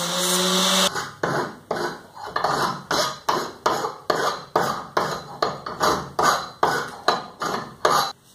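A file rasps on metal with quick, steady strokes.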